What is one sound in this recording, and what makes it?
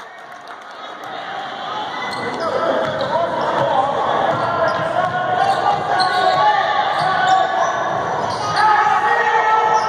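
A crowd of spectators murmurs and calls out in an echoing gym.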